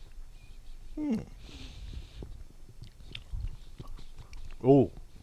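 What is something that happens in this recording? An older man speaks briefly into a close microphone.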